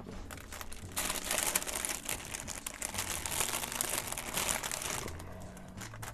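A plastic bag crinkles and rustles close by.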